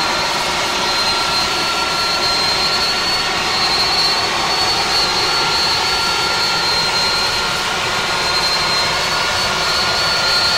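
A jet engine roars steadily in flight, heard from inside the cabin.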